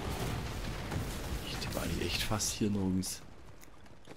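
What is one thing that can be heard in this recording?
Fiery blasts burst and roar in a game battle.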